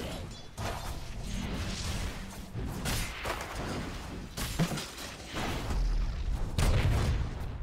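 Fantasy battle sound effects clash, zap and crackle.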